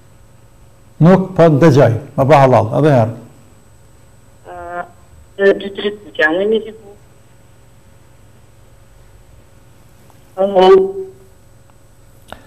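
A middle-aged man prays aloud in a chanting voice through a microphone, in short bursts.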